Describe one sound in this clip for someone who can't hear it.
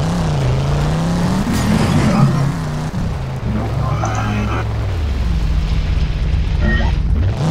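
A car engine roars steadily, rising and falling in pitch as it speeds along.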